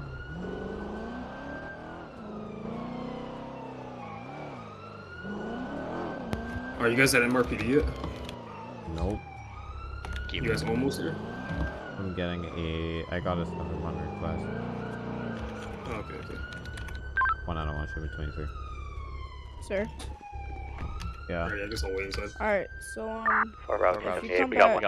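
A police siren wails, rising and falling steadily.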